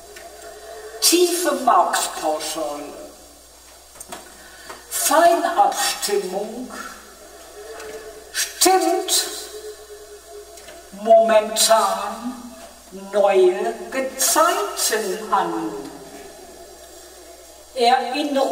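A man speaks slowly and calmly, close to a microphone, with long pauses.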